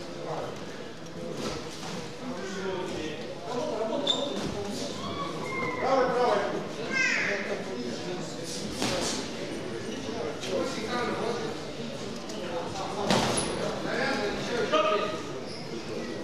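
Boxing gloves thud against a boxer.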